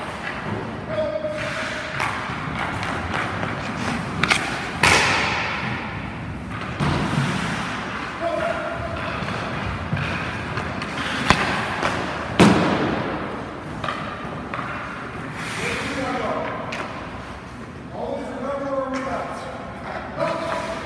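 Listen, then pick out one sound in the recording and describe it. Skate blades scrape and carve across ice.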